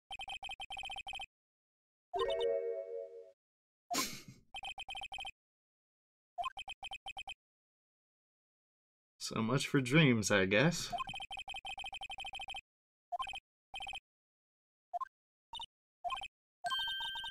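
Quick, even beeps chatter as dialogue text types out.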